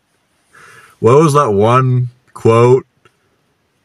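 A man speaks in a low, firm voice nearby.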